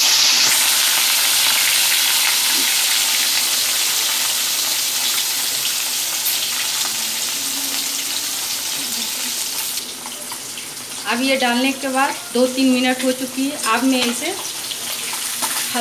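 Hot oil sizzles and crackles loudly as fish fries in a pan.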